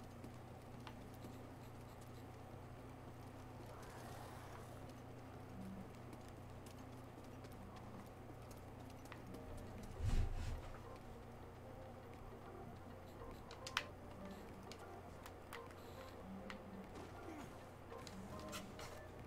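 Music plays quietly in the background.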